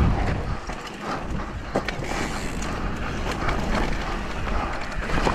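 Wind rumbles loudly against a helmet microphone.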